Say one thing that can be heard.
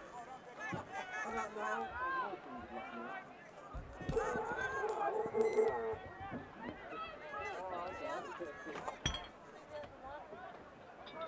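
Young men shout and call to each other outdoors across an open field.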